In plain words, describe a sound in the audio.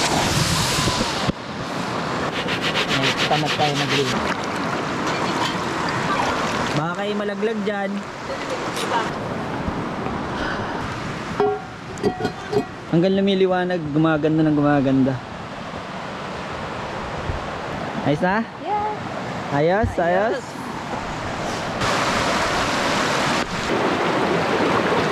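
Water rushes and gurgles over rocks.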